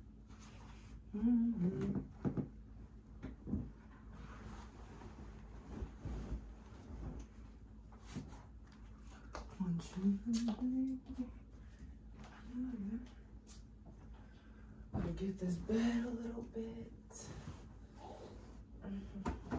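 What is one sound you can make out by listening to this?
Bedding rustles as it is shaken and tossed onto a bed.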